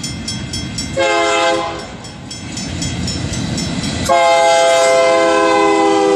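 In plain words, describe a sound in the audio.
A train horn blares loudly in long blasts.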